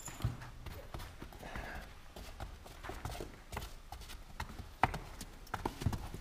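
Hooves clop on stone steps.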